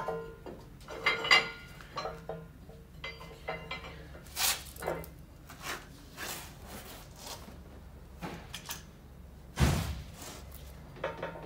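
Metal tools clank and scrape against a vehicle's underside.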